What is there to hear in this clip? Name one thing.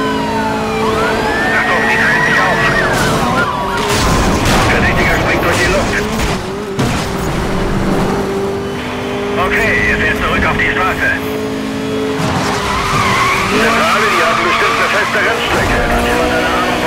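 Tyres squeal as a car drifts through turns.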